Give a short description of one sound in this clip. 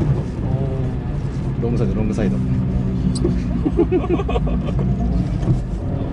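A car engine roars and revs up and down from inside the car.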